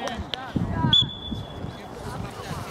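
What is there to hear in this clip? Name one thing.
A referee blows a whistle in one short blast.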